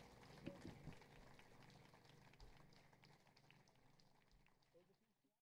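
Acoustic guitars play a soft, fading jazz tune.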